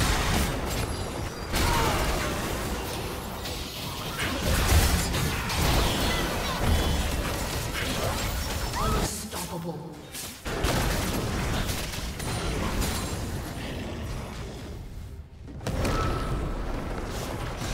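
Magic spells whoosh, crackle and burst in a fast fight.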